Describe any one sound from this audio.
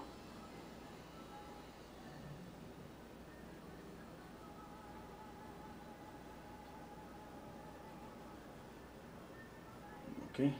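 A paintbrush strokes softly across canvas.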